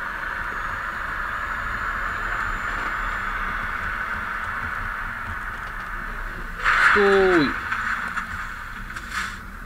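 A truck engine hums steadily as it drives along.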